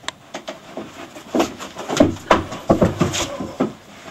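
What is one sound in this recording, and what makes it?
A body thumps onto a wooden porch floor.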